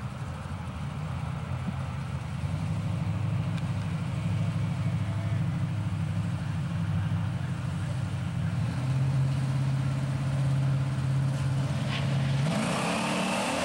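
Drag racing engines idle with a loud, deep rumble.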